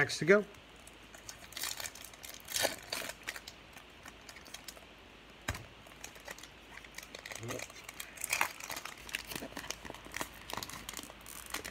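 A foil wrapper crinkles and tears as it is opened.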